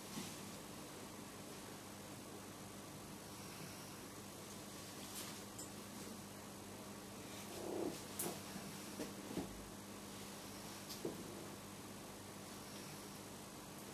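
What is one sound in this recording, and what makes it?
Surgical instruments click and clink faintly against each other.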